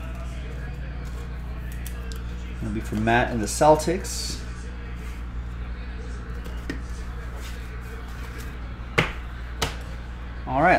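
Trading cards click and slide on a table.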